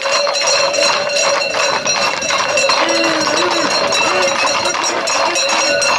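A crowd of people shout and chatter outdoors.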